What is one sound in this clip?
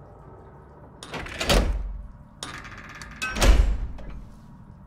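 A heavy metal lever clunks as it is pulled down.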